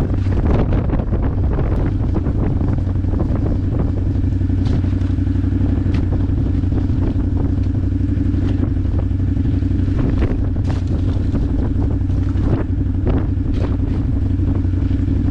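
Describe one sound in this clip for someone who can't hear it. A small shovel scrapes and digs into wet, muddy earth.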